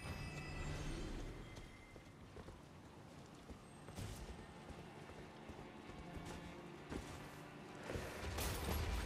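Footsteps thud and rustle through grass at a steady run.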